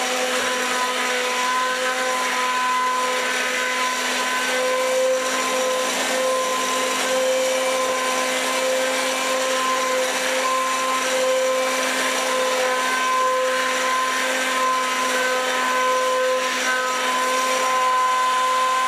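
Soup sloshes and churns under a blender.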